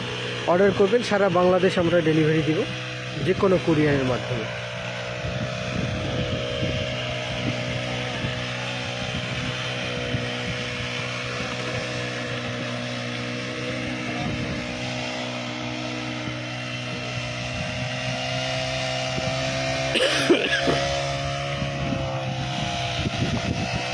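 A small engine hums steadily.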